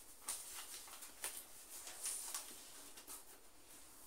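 Papers rustle as a notebook is handled.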